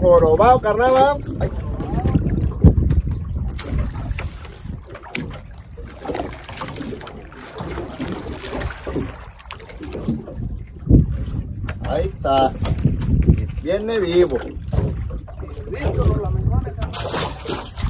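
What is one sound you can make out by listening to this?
Wind rumbles across the microphone outdoors on open water.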